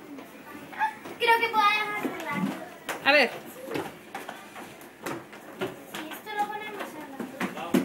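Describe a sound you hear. A child talks excitedly close by.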